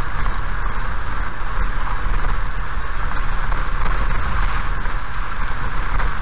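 Raindrops tap on the windscreen.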